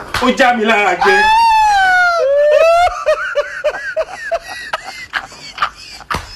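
A man laughs loudly and long, in high rising whoops.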